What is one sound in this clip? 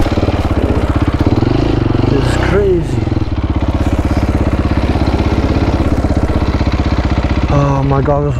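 A dirt bike engine putters and revs up close.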